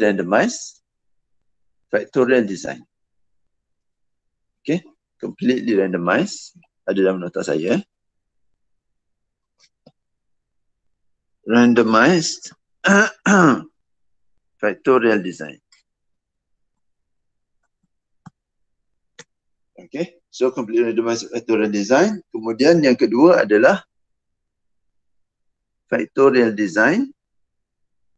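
A man speaks calmly in short phrases through an online call, with pauses between them.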